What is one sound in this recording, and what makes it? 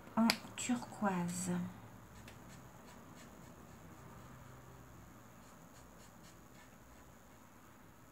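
A marker squeaks softly on paper.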